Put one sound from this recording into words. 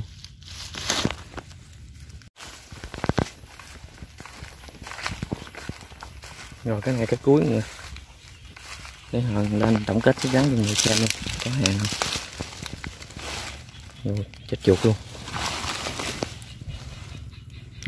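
A hand rustles through dry leaves and twigs.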